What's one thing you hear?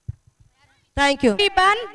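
A woman speaks loudly over a loudspeaker.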